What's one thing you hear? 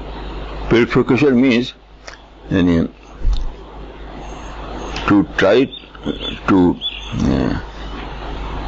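An elderly man speaks slowly and calmly into a close microphone, with pauses.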